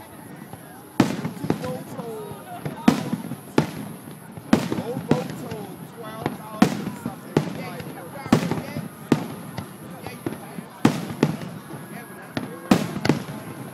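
Fireworks boom and crackle loudly overhead, outdoors.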